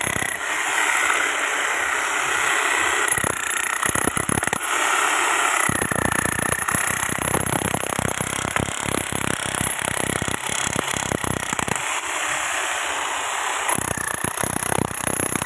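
A power saw whines loudly as it grinds through concrete.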